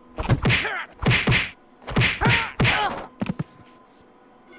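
Heavy blows land in a scuffle.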